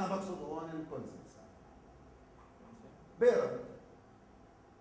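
A man lectures calmly to an audience, in short bursts.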